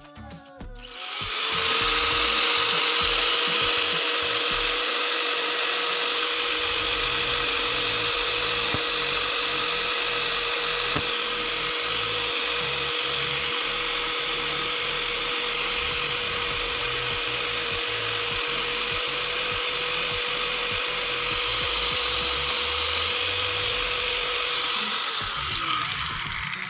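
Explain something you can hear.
An angle grinder motor whirs steadily at high speed, then winds down.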